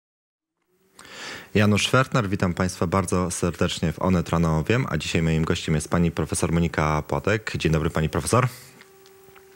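A young man speaks calmly and clearly into a microphone.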